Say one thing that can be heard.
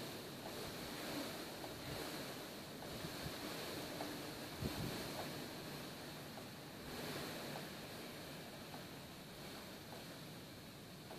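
A plastic tarp drags and rustles over dirt.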